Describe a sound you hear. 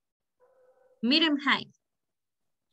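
A young woman speaks briefly through an online call.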